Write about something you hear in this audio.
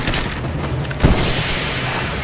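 A fiery blast bursts with a deep boom.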